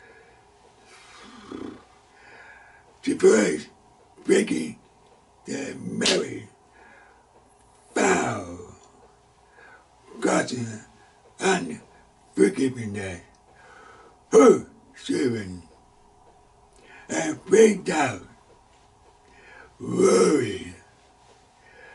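An elderly man speaks emphatically into a close microphone, in short bursts with pauses.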